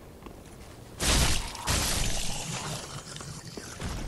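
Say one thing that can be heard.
A sword swings with a sharp whoosh and strikes.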